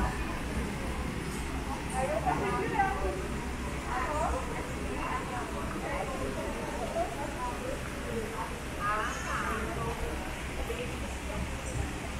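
A crowd of people chatters at a distance outdoors.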